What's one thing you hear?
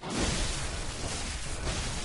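A blade slashes and strikes flesh.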